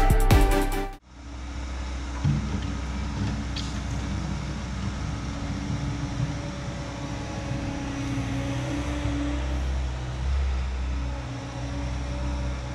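A small loader's diesel engine rumbles steadily in the distance.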